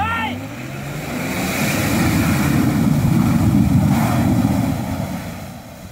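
Water splashes under tyres.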